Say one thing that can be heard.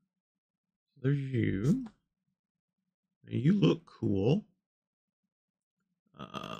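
A middle-aged man talks calmly and close into a microphone, in short bursts.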